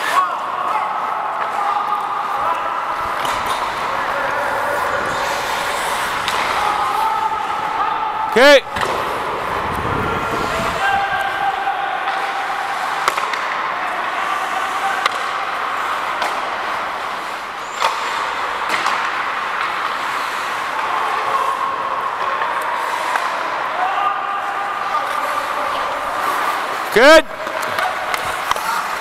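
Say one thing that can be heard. Skates scrape and hiss across ice in a large echoing rink.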